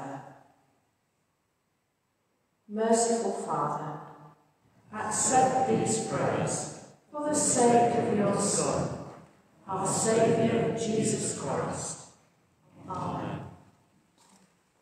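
An elderly woman speaks calmly through a microphone in a large echoing hall.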